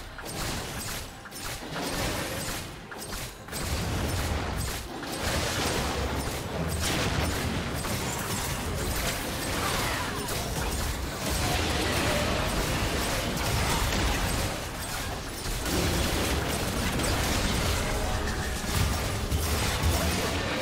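Magic spells whoosh and crackle in a fast battle.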